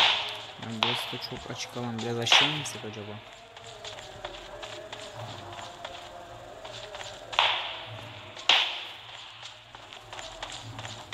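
Footsteps scuff over rocky ground.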